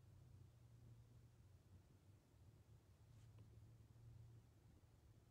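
A stylus taps and slides softly on a glass tablet surface.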